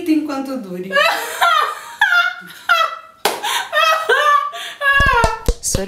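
Two women laugh loudly, close by.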